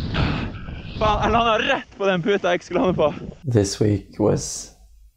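A young man speaks breathlessly close by.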